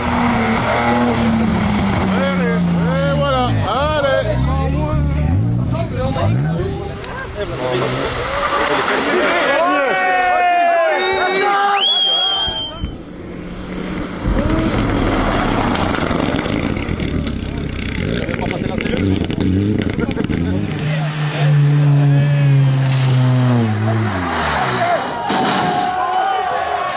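Tyres skid and crunch on gravel and mud.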